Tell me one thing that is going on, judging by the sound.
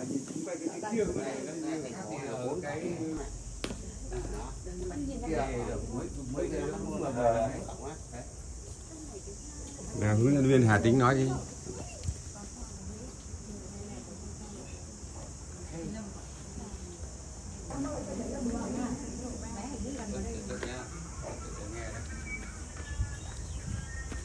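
A man speaks calmly through a headset microphone and small loudspeaker.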